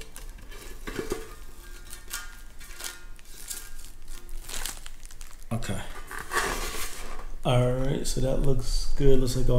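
A thin metal sheet rattles and clanks as it is handled.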